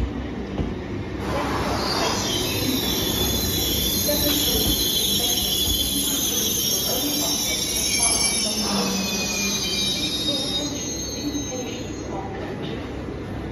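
A train rolls slowly along the tracks with rumbling wheels.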